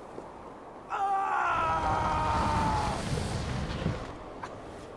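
A young woman screams loudly and close by.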